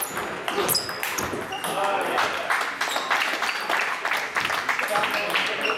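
A table tennis ball clicks sharply back and forth off paddles and a table, echoing in a large hall.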